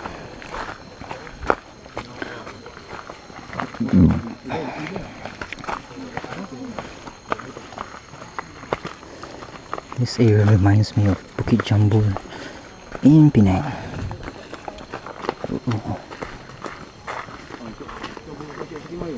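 Footsteps crunch on a dirt trail.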